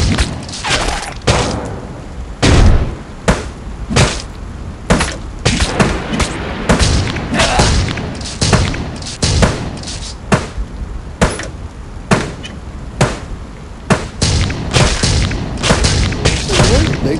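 Guns fire in quick bursts.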